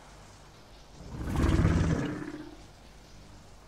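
A large creature lets out a loud, deep roar.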